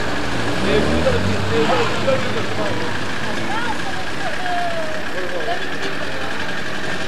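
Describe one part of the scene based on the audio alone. Adult men talk with each other nearby.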